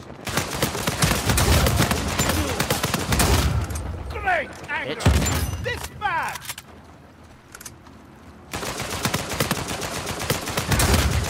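An automatic rifle fires rapid bursts close by.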